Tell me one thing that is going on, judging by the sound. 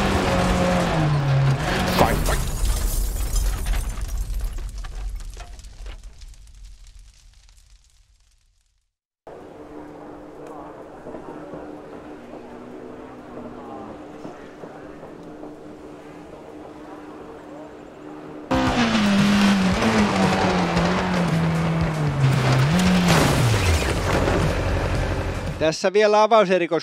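A rally car engine roars and revs hard.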